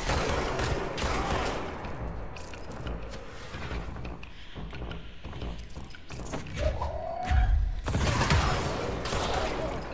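Explosions boom with debris crackling.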